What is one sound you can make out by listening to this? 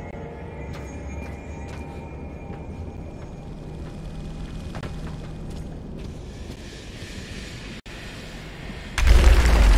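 Machinery hums low and steadily.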